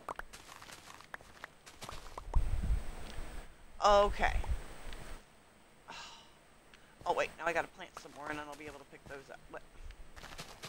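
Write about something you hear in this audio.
Short soft pops sound as crops are broken and picked up.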